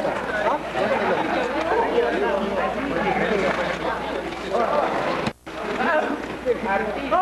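A crowd of young people chatter and shout outdoors.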